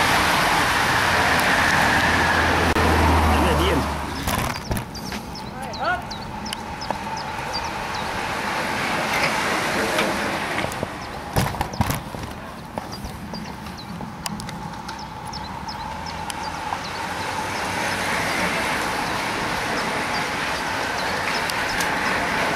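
A pack of racing bicycles whirs past on a paved road.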